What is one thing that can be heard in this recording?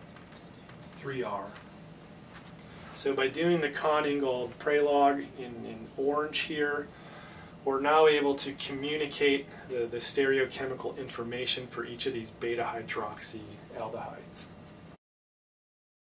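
A man lectures clearly and with animation, close to a microphone.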